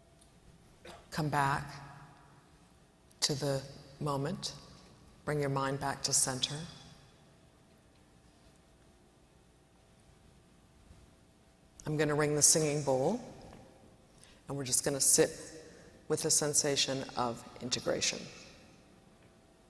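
A woman speaks calmly through a microphone, with pauses between phrases.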